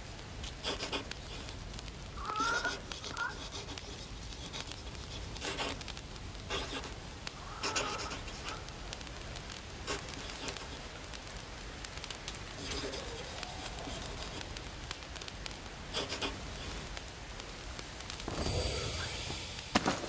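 A campfire crackles softly.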